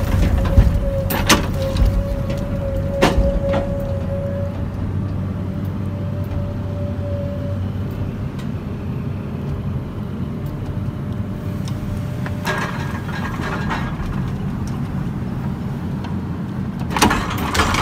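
Logs knock and thud against each other.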